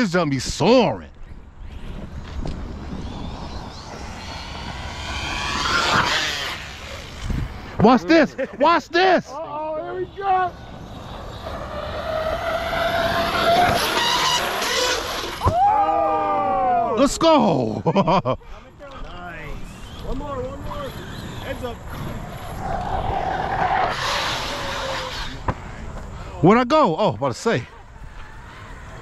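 A small electric motor whines, rising and falling in pitch as a toy car races around.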